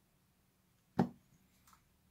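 Hands slap down on a speed-cubing timer.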